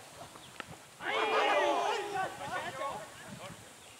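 Men shout loudly together outdoors.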